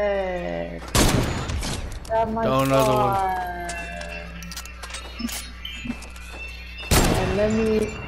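A rifle fires with a sharp, loud crack.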